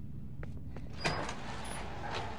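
A metal door bangs open.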